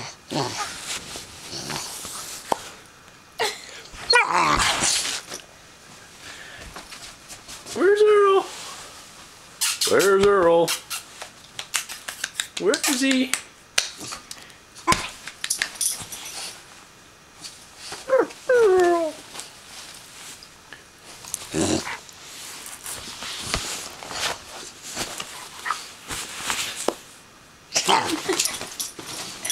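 Bedding rustles as a puppy scrambles about close by.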